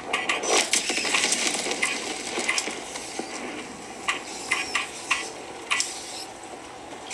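Gunshots crack in quick bursts from a handheld game console's small speakers.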